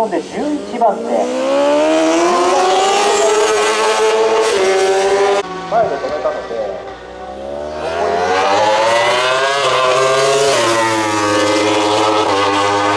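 A four-cylinder superbike accelerates hard through the gears.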